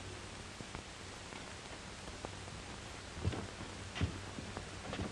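A wooden door creaks open and knocks.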